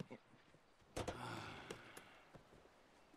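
A metal latch clanks on a truck's door.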